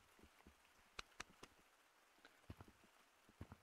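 Soft clicks sound as buttons on a panel are pressed.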